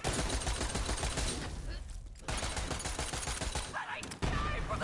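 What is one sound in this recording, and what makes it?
Gunfire blasts rapidly in a video game.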